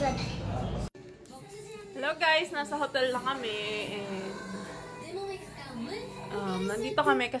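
A young woman talks close by, casually.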